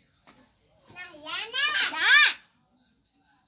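A young girl calls out loudly in a high voice.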